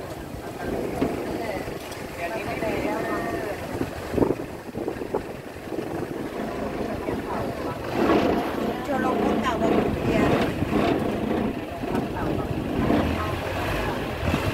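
Water splashes and rushes along a boat's hull.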